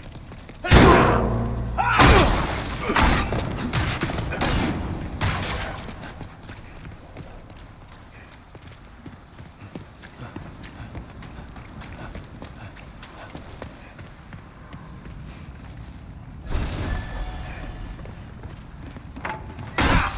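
A sword slashes and clangs against an enemy.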